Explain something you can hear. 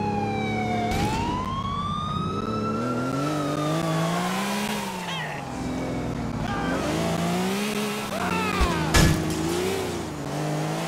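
A sports car engine revs and roars, rising and falling in pitch as it changes gear.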